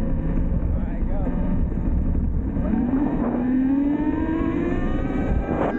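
A motorbike engine revs and rises in pitch as it rides along.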